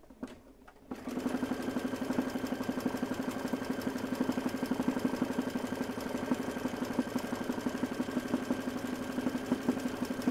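An embroidery sewing machine runs with a fast, steady rattling hum.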